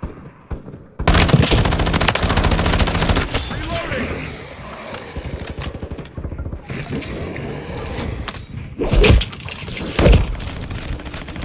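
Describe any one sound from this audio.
A rifle fires loud, rapid bursts close by.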